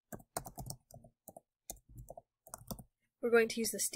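Keyboard keys click in quick, uneven taps.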